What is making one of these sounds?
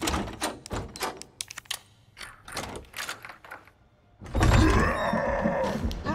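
A key turns and clicks in a door lock.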